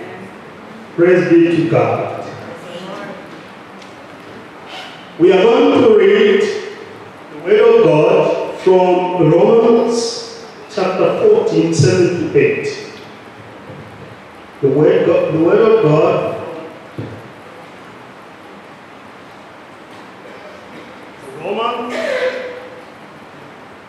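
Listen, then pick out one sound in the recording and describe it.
A middle-aged man speaks slowly and solemnly into a microphone, in short phrases with pauses.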